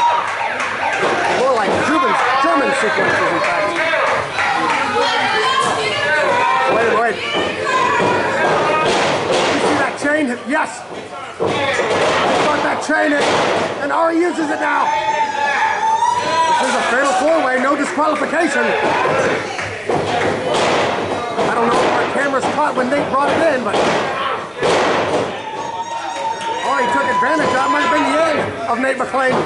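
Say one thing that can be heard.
A crowd cheers, shouts and whistles in an echoing hall.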